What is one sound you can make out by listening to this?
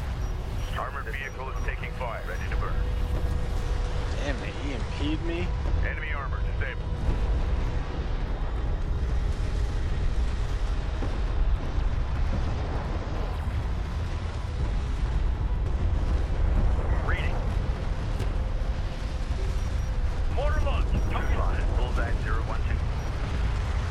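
Gunfire and explosions rumble in a game battle.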